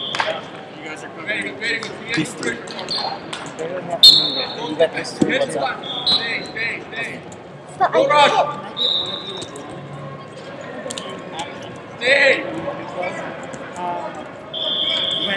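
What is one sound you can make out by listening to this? Wrestling shoes squeak sharply on a mat.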